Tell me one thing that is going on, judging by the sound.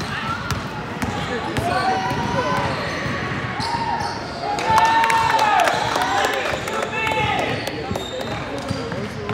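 A basketball bounces on the court with quick thuds.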